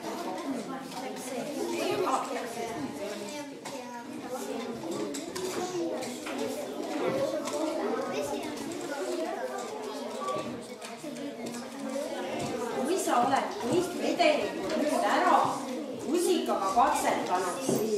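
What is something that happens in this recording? Children chatter and talk in a room throughout.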